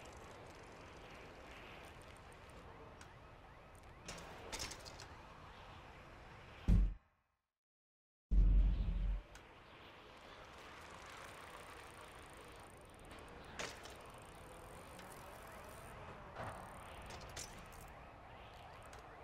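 Bicycle tyres roll and whir steadily over a smooth surface.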